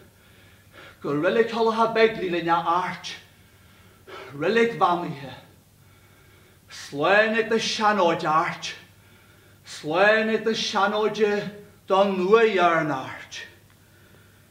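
An elderly man speaks dramatically in loud bursts with pauses.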